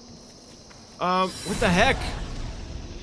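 A magic spell fires with a ringing, shimmering whoosh.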